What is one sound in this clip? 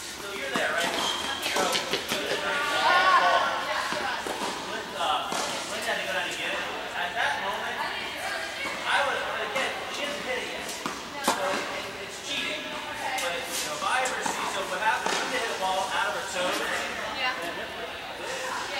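Tennis rackets strike balls in a large echoing indoor hall.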